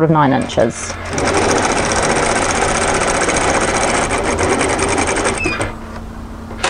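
A sewing machine runs with a fast, steady whirring rattle.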